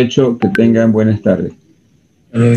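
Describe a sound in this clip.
An older man speaks through an online call.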